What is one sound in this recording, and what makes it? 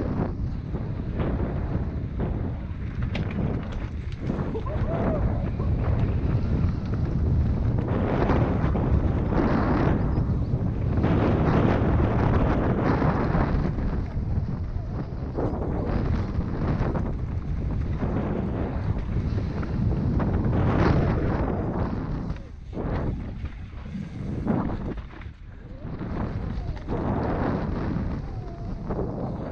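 Bike tyres crunch and skid over loose dirt and gravel.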